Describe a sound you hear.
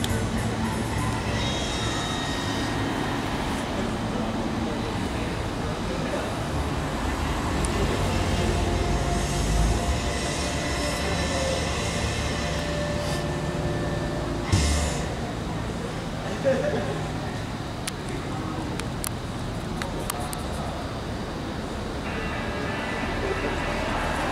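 A crayon scratches across cardboard.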